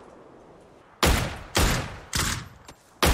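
Loud gunshots ring out in quick succession.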